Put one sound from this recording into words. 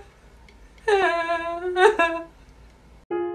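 A young man sings a short rising phrase.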